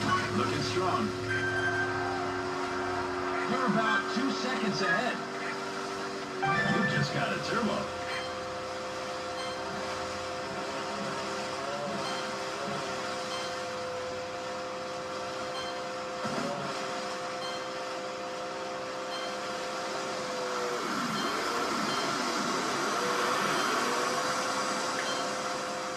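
Water sprays and splashes behind a speeding jet ski.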